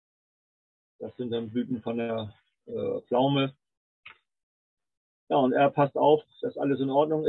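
An older man speaks calmly over an online call, pausing between phrases.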